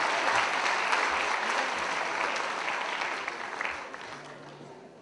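An audience claps in a large hall, the applause slowly fading.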